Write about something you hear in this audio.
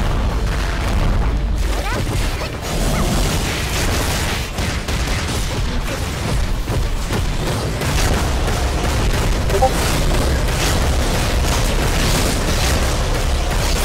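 Sword slashes and magic blasts hit in quick bursts.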